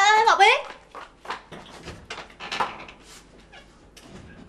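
Footsteps walk away across a hard floor.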